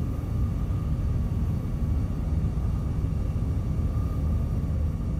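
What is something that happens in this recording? A deep machine hum drones steadily.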